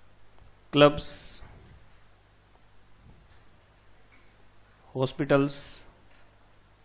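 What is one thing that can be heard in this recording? A man speaks in short phrases, lecturing into a close microphone.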